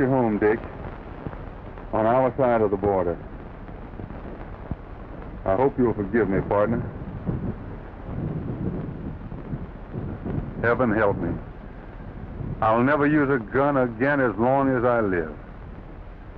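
A man sings a slow, mournful song in short phrases.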